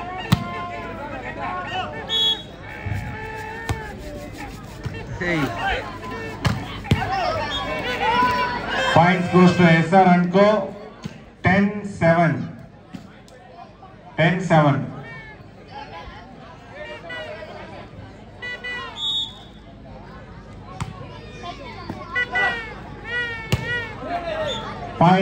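Men on the court shout to each other.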